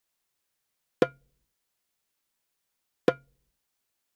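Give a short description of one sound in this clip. Short menu clicks sound.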